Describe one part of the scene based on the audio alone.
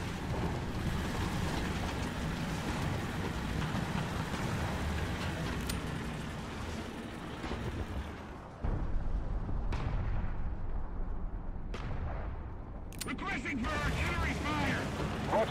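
A tank engine rumbles.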